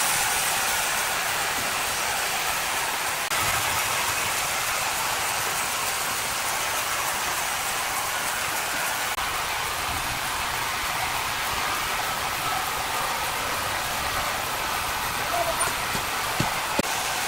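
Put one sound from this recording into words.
A band saw whines steadily as it cuts through a large log.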